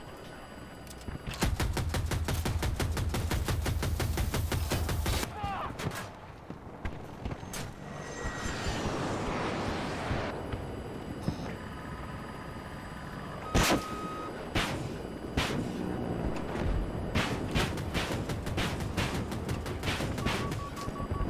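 A helicopter's rotor thumps steadily.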